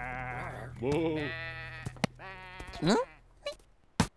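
Sheep bleat.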